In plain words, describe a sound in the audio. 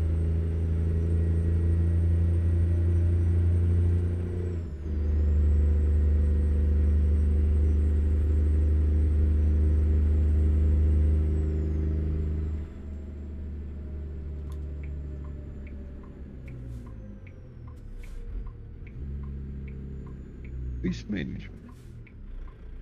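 A truck engine drones steadily at speed, then eases off to a lower rumble.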